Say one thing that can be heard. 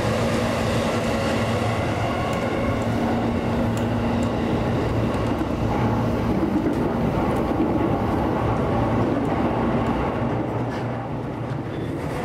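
A train's wheels and motor hum steadily outdoors.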